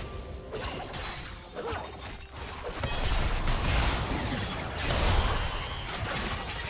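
Magic spells burst and crackle in a video game battle.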